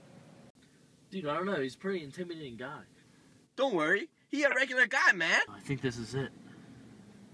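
A young man talks with animation inside a car.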